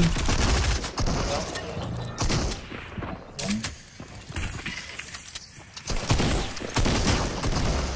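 Rifle shots crack in a video game.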